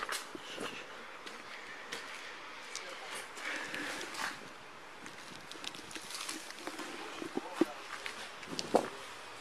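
Footsteps crunch over loose rubble and debris.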